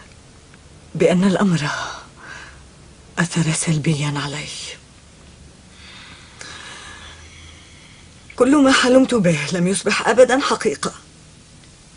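A second woman answers in a calm, low voice.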